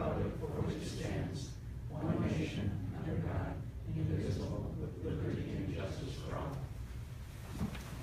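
A group of men and women recite together in unison in a room.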